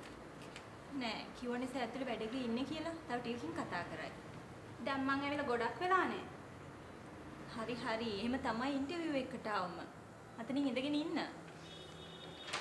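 Another young woman answers in a firm voice nearby.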